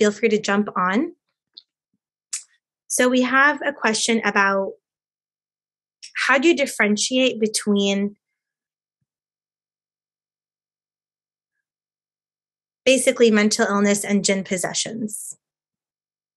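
A young woman speaks calmly through an online call, with pauses.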